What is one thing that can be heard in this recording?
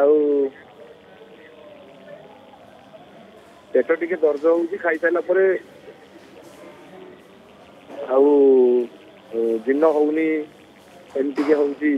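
A woman speaks clearly into a microphone in short bursts.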